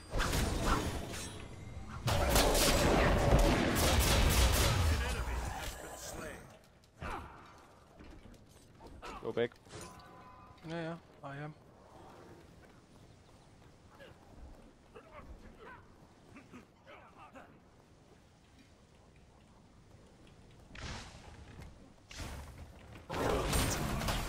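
Game combat effects clash and burst loudly.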